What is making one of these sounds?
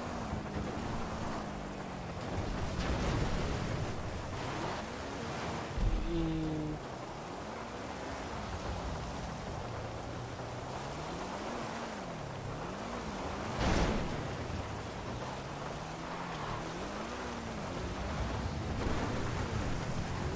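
A car engine revs and roars, rising and falling in pitch.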